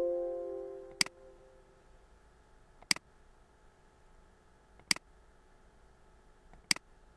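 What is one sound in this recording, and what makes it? A mouse button clicks sharply now and then.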